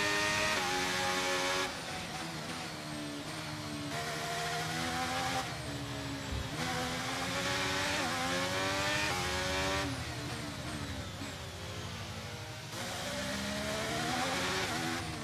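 A racing car engine screams at high revs, rising and falling in pitch as it shifts gears.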